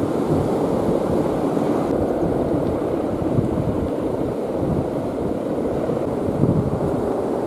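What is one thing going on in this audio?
Wind rushes and buffets loudly outdoors.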